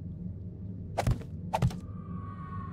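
A wooden block knocks into place.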